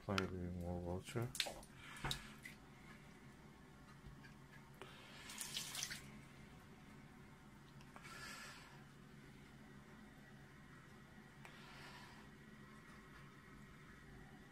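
Tap water runs steadily into a sink full of water.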